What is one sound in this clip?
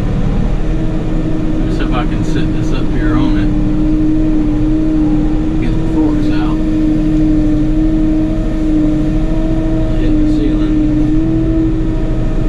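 A compact diesel tractor engine runs, heard from inside the cab.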